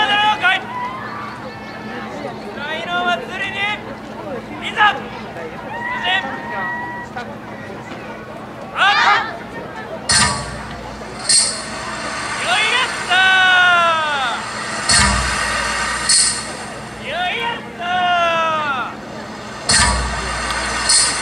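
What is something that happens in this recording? Men and women shout in chorus nearby, with long rising and falling calls, outdoors.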